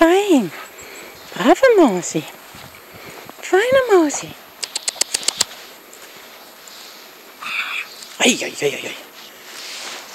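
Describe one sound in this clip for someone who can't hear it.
A dog's paws crunch softly in snow.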